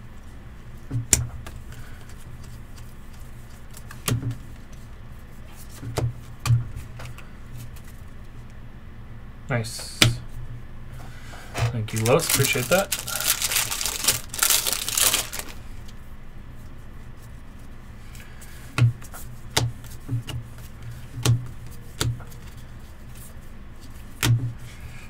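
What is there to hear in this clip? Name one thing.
Trading cards tap and shuffle against each other.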